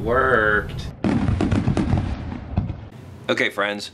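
Fireworks crackle and pop.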